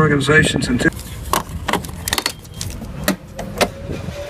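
Hard plastic clicks and knocks as a cover is handled up close.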